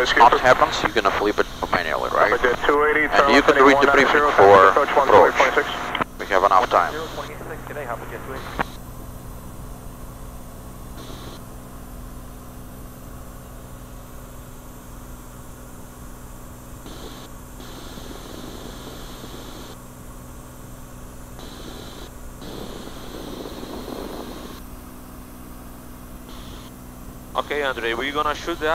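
A small aircraft's engine drones steadily.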